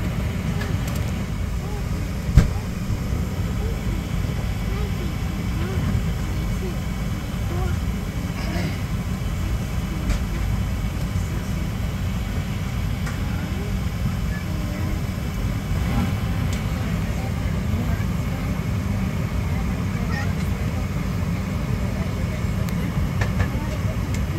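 A jet engine hums with a steady low roar close by, heard from inside an aircraft cabin.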